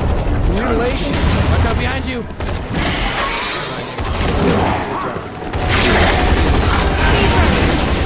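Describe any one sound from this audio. Gunfire crackles in rapid bursts from a video game.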